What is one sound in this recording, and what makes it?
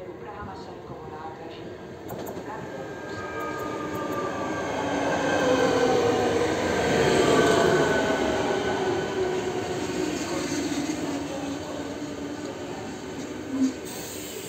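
An electric train approaches and rolls past close by with a rising, then fading hum and whine.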